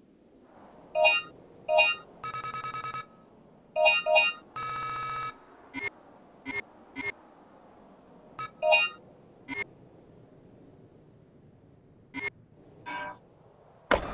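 Electronic menu beeps and chimes sound as selections change.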